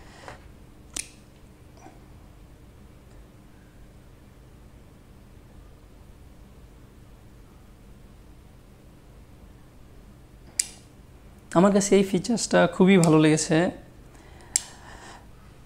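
Two small earbuds click together magnetically.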